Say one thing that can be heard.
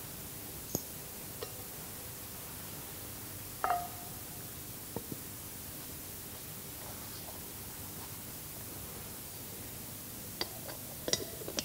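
Small objects clink and knock softly on a table in an echoing room.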